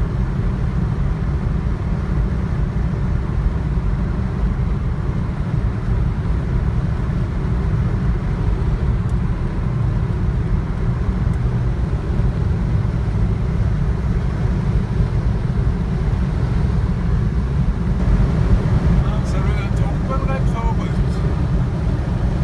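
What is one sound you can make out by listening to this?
A car's engine and tyres rumble steadily on the road from inside.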